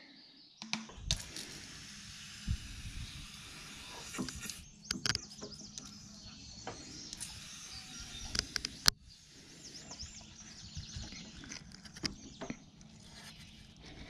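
A garden sprayer hisses steadily as it sprays.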